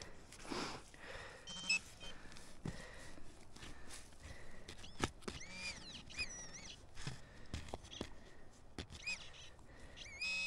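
A small hand trowel scrapes and digs into frozen soil.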